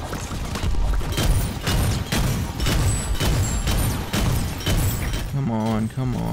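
A game weapon fires rapid bursts of shots.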